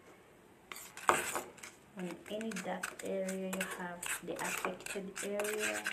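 A spatula scrapes and stirs inside a pot.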